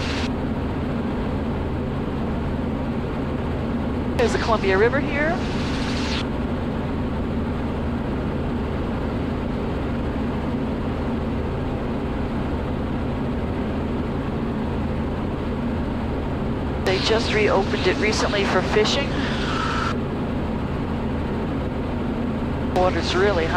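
A helicopter engine and rotor drone steadily throughout.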